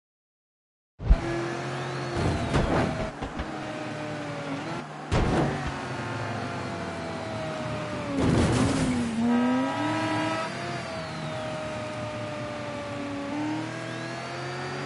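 Tyres rumble on a road surface.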